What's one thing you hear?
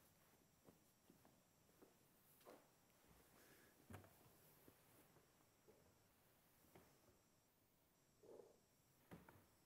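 A wood fire crackles and pops softly.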